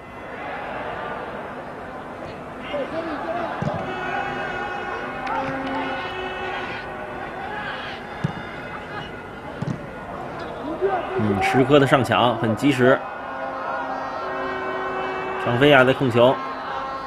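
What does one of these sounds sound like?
A stadium crowd murmurs and cheers steadily in the distance.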